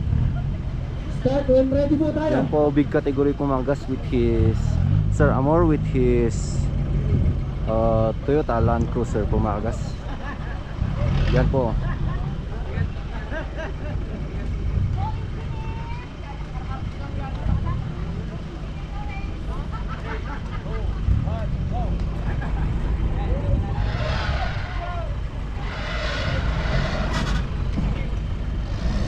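An off-road vehicle's engine rumbles and revs nearby.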